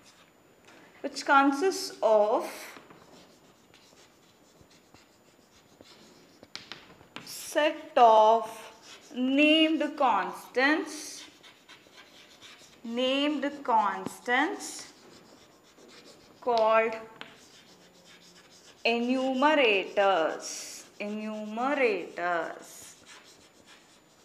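A woman speaks calmly, explaining in a clear, close voice.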